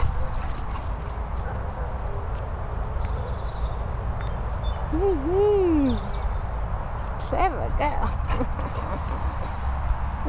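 A dog runs across grass.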